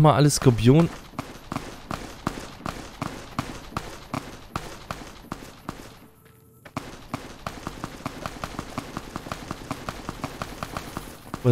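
Footsteps crunch steadily on gravel and dry ground.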